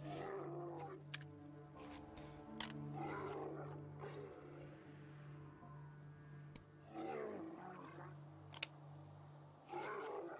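Metal parts of a gun click as they are handled.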